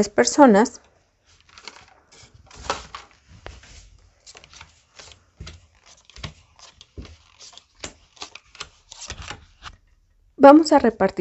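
Playing cards are dealt and tap softly onto a cloth-covered table.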